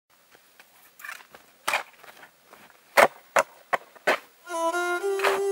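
A shovel crunches and chops into packed snow.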